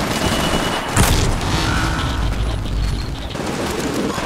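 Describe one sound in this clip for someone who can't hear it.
A loud explosion booms with a deep rumble.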